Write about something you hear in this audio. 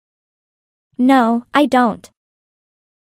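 A young woman answers briefly in a calm voice.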